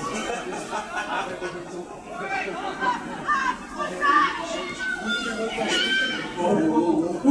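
Young women shout and call to each other across an open outdoor pitch.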